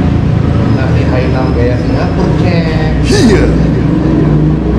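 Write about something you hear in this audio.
A man talks animatedly close by.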